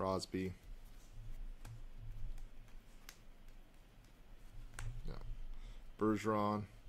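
Trading cards slide and click against each other in hands.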